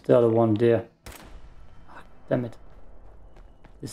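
A rifle fires.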